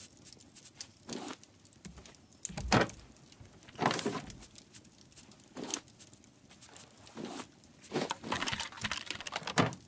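Short soft clicks sound now and then.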